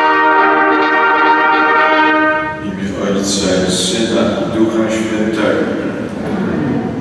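A crowd of people sings together in a large echoing hall.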